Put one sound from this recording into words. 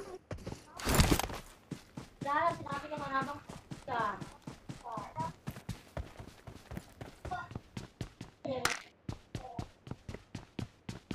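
Footsteps thud quickly and steadily as someone runs.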